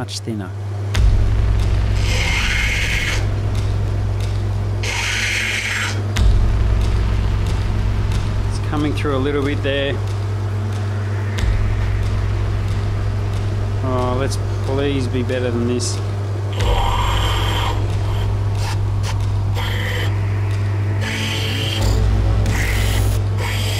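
A grinding wheel motor hums steadily.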